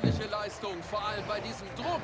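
A crowd cheers.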